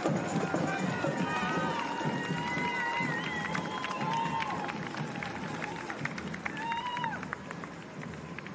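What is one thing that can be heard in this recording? A crowd cheers and whistles loudly close by.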